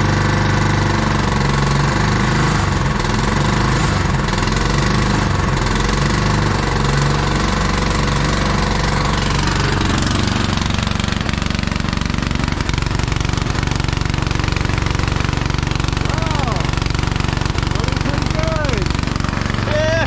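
A small petrol engine runs loudly and steadily, close by.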